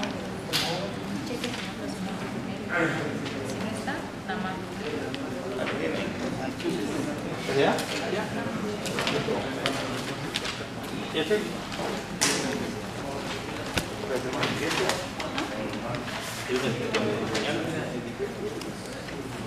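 Papers rustle as a man turns sheets.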